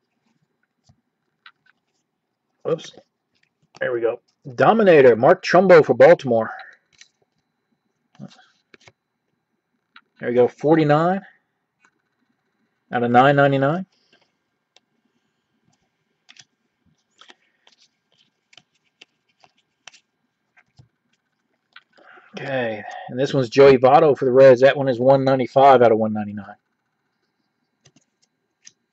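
Trading cards rustle and slide softly against each other in hands.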